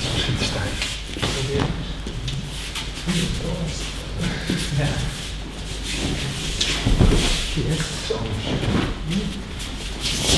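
Bodies thud onto mats as people are thrown.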